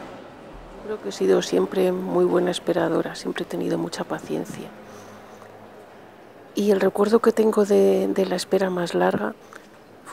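A woman sings in a large echoing hall.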